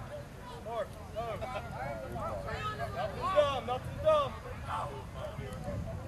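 Men nearby talk and call out loudly outdoors.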